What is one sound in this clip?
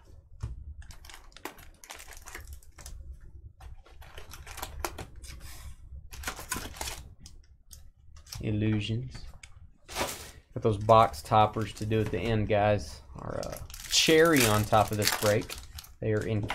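Foil card wrappers crinkle and rustle as they are handled.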